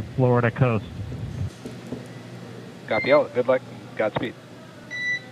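A man speaks briefly over a crackly radio link.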